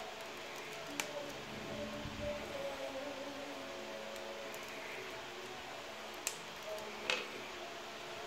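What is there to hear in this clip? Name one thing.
Small plastic parts click as hands snap them together.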